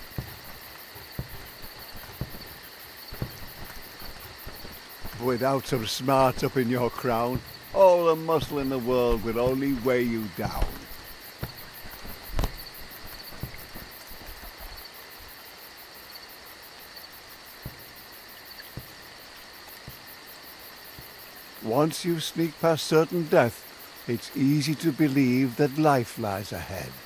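Rain falls steadily all around.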